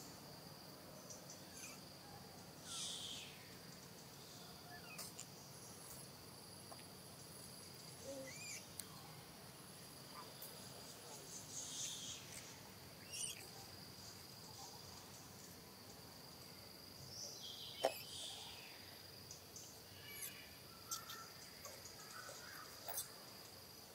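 Dry leaves rustle as a small animal crawls over them.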